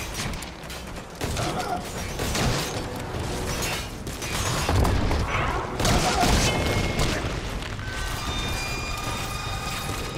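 Gunshots fire in sharp bursts.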